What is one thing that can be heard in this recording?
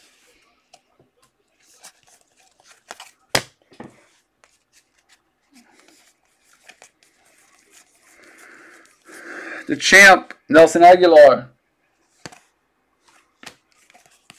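Trading cards shuffle and flick against each other in the hands.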